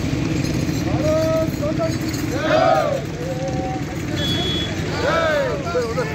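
Men shout and cheer loudly nearby.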